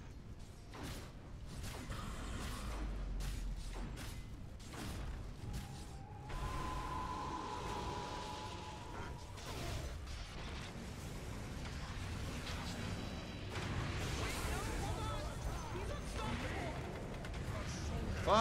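Game spells crackle and whoosh in battle.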